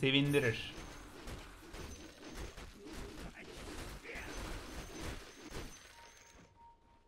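Clashing, clicking game combat sounds play.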